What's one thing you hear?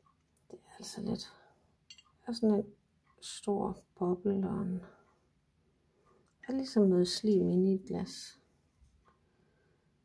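Liquid sloshes gently inside a glass jar as it is turned over.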